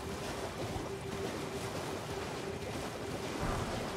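Hooves splash through shallow water.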